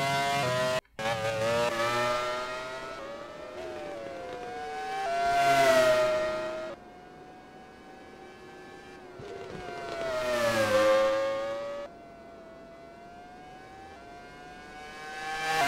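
A racing car roars past close by and fades away.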